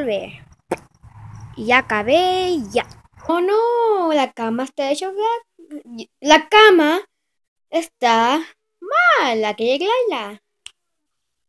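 A young person sings and talks loudly, close by.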